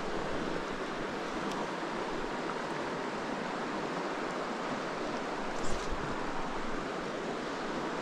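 A shallow stream rushes and babbles over rocks close by.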